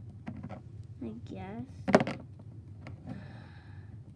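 A small plastic toy knocks against a tabletop.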